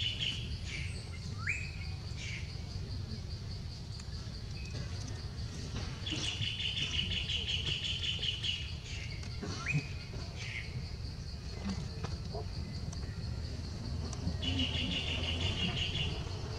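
A small monkey chews and smacks on fruit up close.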